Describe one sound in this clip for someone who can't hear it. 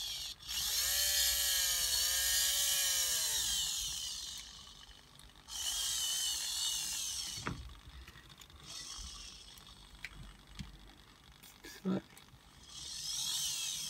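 Small servo motors whine in short bursts as a mechanism moves.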